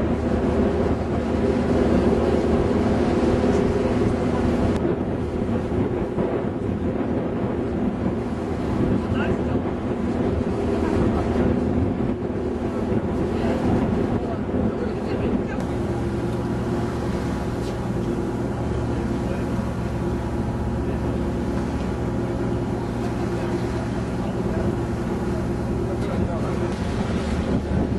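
Wind blows across a microphone outdoors.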